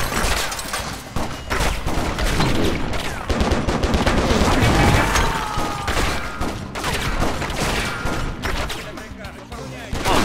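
A rifle clicks and clatters as it is reloaded.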